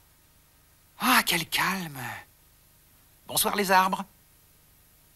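A puppet creature speaks in a high, squeaky voice up close.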